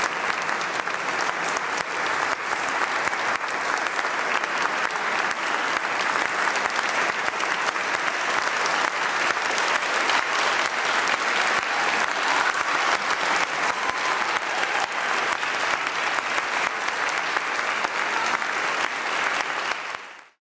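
An audience claps and applauds steadily in a large echoing hall.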